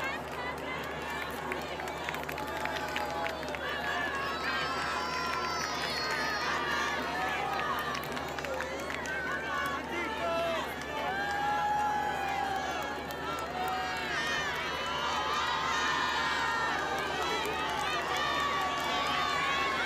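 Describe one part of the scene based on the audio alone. A large crowd cheers and shouts loudly outdoors.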